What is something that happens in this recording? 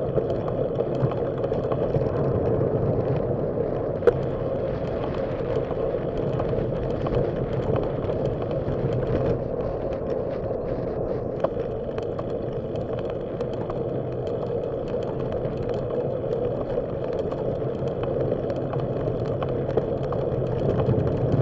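Wind buffets steadily, in a low roar, outdoors.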